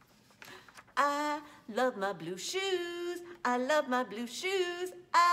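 A woman sings close by in a lilting voice.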